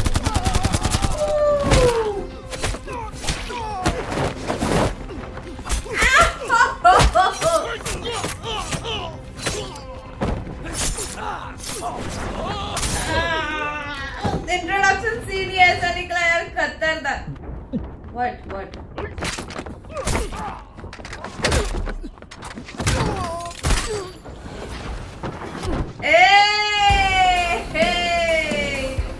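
A young woman exclaims and talks with excitement close to a microphone.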